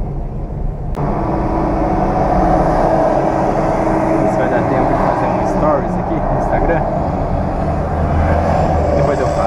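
A passing truck roars close by outside the window.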